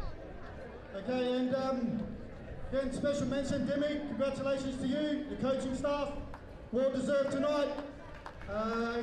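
A man speaks into a microphone over a loudspeaker, echoing outdoors.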